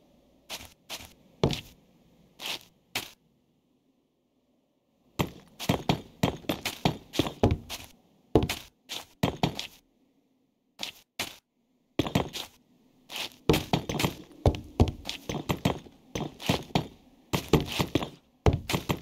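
Blocks thud softly as they are placed in quick bursts.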